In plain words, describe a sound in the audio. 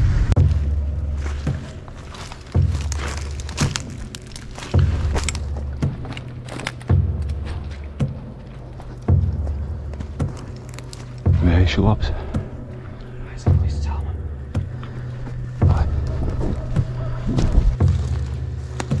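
Footsteps squelch and crunch through wet ground.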